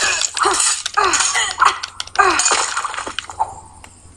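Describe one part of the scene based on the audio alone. Heavy blows thud against a body in a scuffle.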